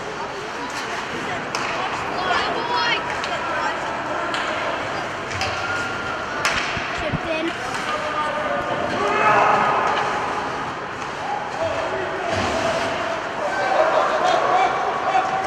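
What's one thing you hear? Hockey sticks clack against the puck and the ice now and then.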